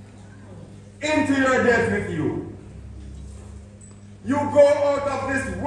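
A man sings loudly into a microphone in short, sustained phrases.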